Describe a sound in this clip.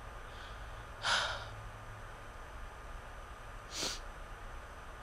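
A young person sniffles close to the microphone.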